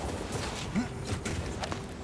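A waterfall roars nearby.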